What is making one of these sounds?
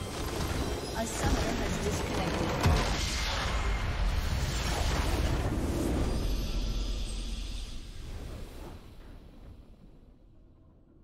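A huge magical blast booms and roars, then slowly fades away.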